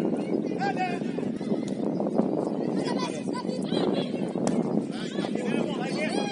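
Young players shout calls to each other across an open outdoor pitch.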